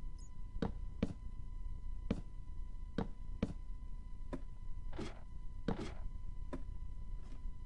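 Footsteps clatter on a wooden ladder in a steady rhythm.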